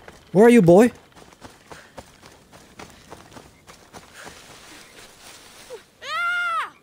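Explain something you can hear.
Footsteps rustle quickly through dry grass.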